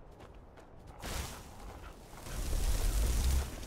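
A magic spell crackles and roars loudly.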